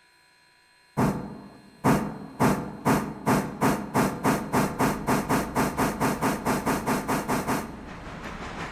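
A steam locomotive chuffs in quickening beats as it pulls away.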